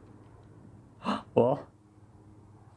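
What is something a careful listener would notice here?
A young man speaks briefly and close to a microphone.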